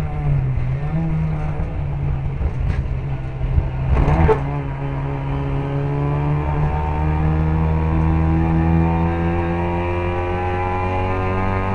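A small racing car engine roars loudly close by, its pitch rising and falling with the gears.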